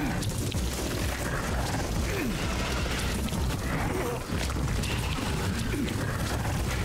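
Wet, squelching flesh sounds churn steadily.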